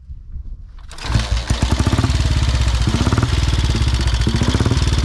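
An old motorcycle engine sputters to life and idles with a steady, thumping rhythm.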